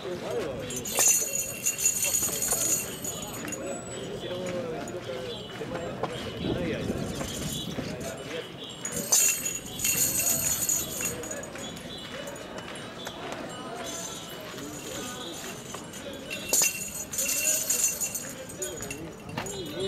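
Metal rings on staffs jingle loudly as the staffs strike the ground in bursts.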